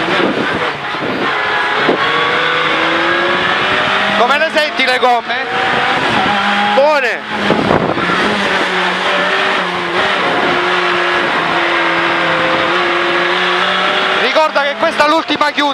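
A racing car engine roars loudly, rising and falling in pitch as the car shifts gears.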